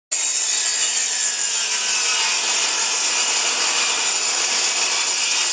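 A table saw whirs steadily.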